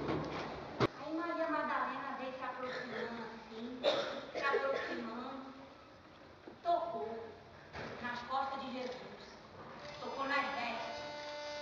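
An elderly woman speaks with animation from a stage in a large echoing hall.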